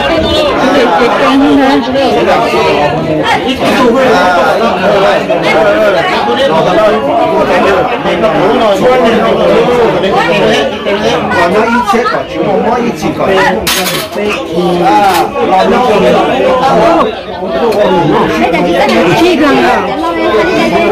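A crowd of men and women talk over one another nearby.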